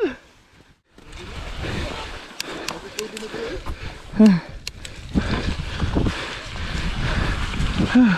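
Bicycle tyres roll and rattle over snow and dirt.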